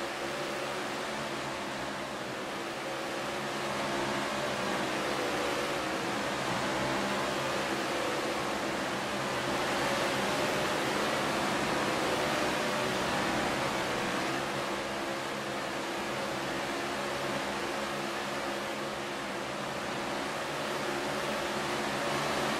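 Several racing car engines roar steadily.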